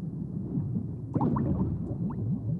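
An explosion booms, muffled underwater.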